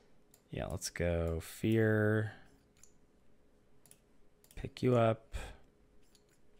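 A man speaks with animation into a headset microphone, close up.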